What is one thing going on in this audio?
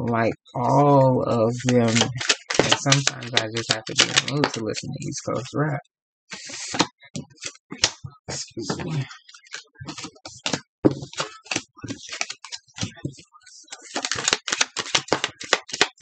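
Playing cards riffle and shuffle in hands.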